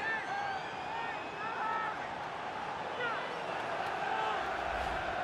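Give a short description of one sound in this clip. A large stadium crowd cheers loudly.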